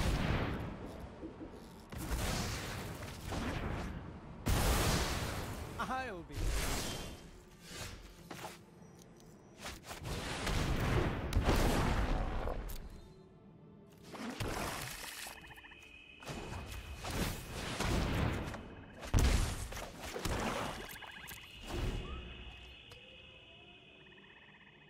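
Game sound effects whoosh and chime as cards are played.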